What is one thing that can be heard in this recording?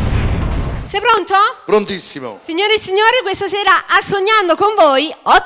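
A young woman sings into a microphone over a loudspeaker.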